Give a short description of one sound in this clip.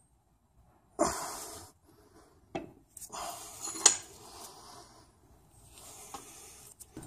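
Metal parts clink and scrape together as they are handled.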